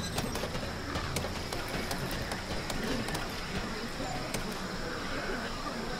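Boots clank steadily on a metal ladder rung by rung.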